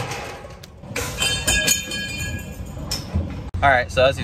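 A metal trailer gate rattles and clangs shut.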